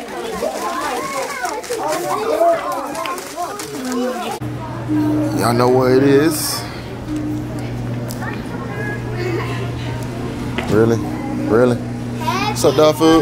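Young children talk and chatter nearby.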